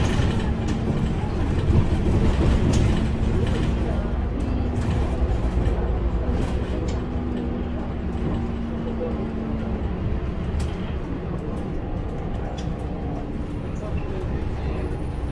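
Loose parts inside a bus rattle and click.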